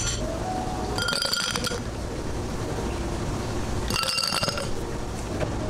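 Ice cubes clatter from a scoop into a tall glass.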